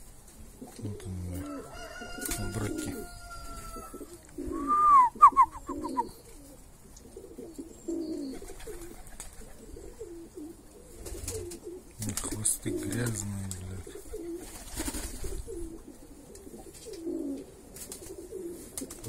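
Domestic pigeons coo.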